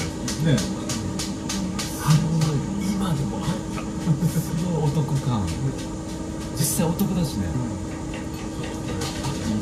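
A second man laughs close by.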